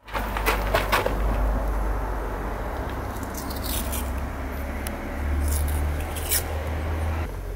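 Small metal parts click and rattle under busy hands.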